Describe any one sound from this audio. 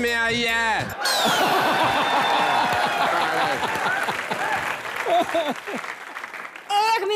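A large audience laughs.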